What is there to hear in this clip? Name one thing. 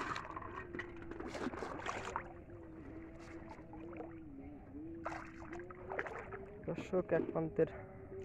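Water drips and sloshes as a man lifts a net trap.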